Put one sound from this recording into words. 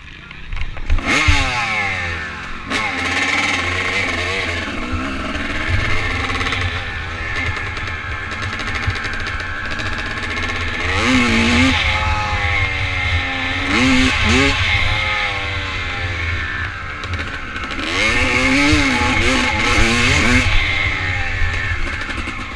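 A motorcycle engine revs loudly, rising and falling in pitch as it accelerates and shifts gears.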